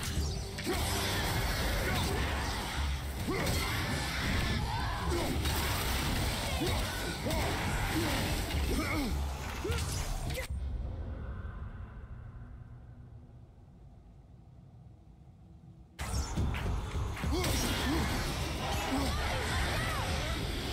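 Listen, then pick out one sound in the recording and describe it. Creatures snarl and grunt during a fight.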